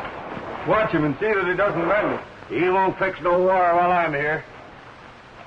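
A man speaks loudly and urgently.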